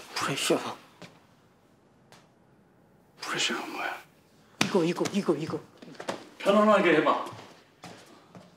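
A man speaks sharply in short bursts.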